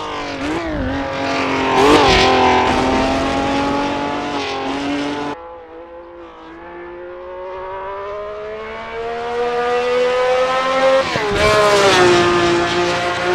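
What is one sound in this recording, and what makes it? A V12 racing car roars past up close.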